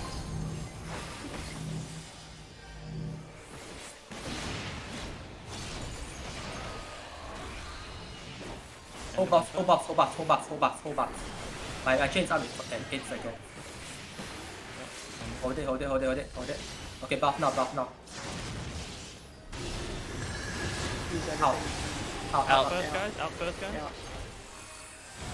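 Spell blasts and explosions crash and rumble in a battle.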